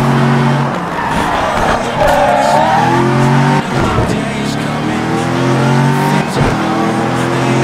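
Tyres screech as a car slows sharply.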